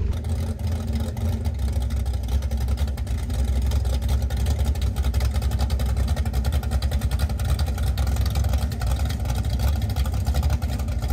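A muscle car's V8 engine idles with a loud, lumpy rumble close by.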